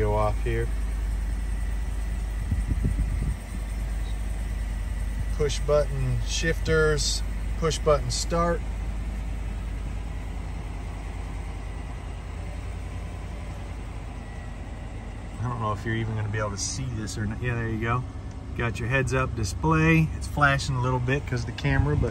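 A car engine idles with a low, steady hum.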